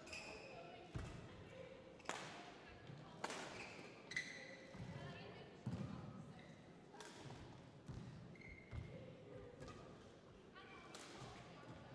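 A shuttlecock is struck sharply back and forth with rackets in a large echoing hall.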